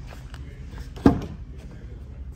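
A car door latch clicks open with a sharp thud.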